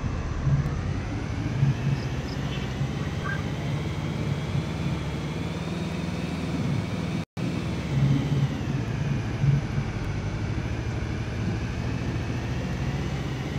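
A heavy vehicle engine rumbles steadily as it drives over rough ground.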